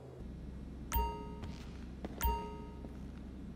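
Two short electronic chimes ring out.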